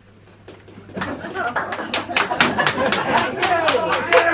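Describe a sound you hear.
A small group of people claps their hands.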